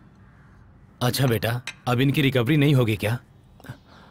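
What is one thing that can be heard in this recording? A second man answers calmly nearby.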